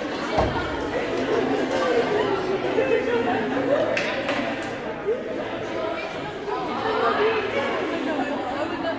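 Girls and young women call out to each other loudly.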